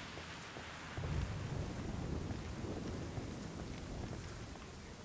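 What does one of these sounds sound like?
Footsteps crunch on loose gravel and rock.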